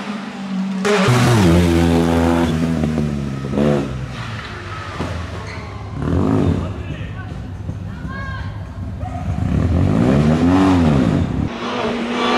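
A small car engine buzzes and revs hard, coming close and then fading off.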